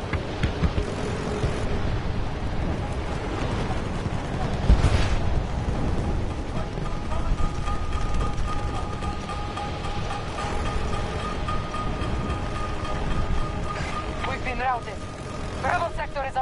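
Wind rushes past a soldier in freefall.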